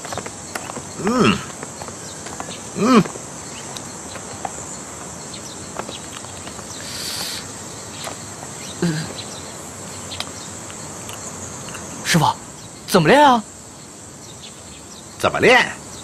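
An older man answers calmly.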